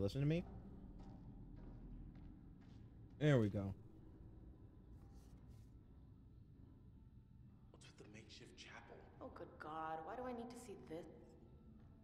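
A young man speaks into a microphone, reacting with animation.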